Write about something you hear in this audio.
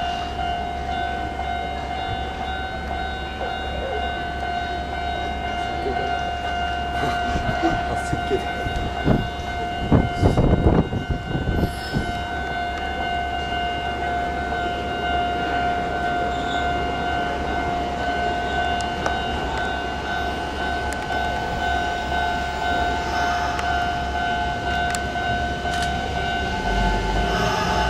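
A train rumbles closer and slowly rolls in along the tracks.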